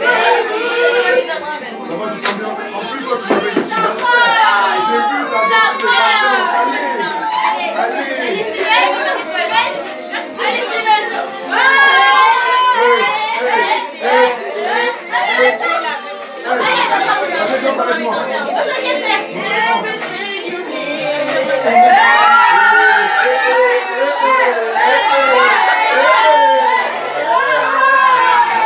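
A crowd of men and women chat and call out loudly nearby.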